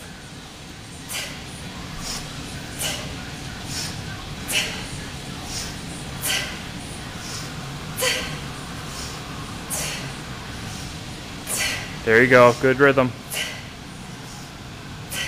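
A young woman exhales sharply and rhythmically with each swing.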